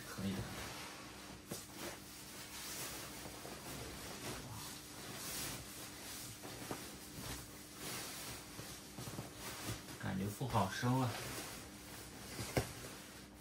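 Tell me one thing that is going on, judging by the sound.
Nylon fabric rustles and crinkles as it is handled.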